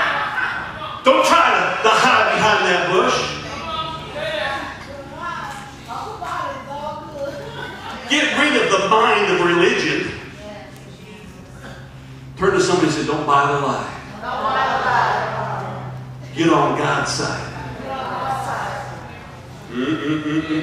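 A middle-aged man preaches with animation through a microphone and loudspeakers, in a room with some echo.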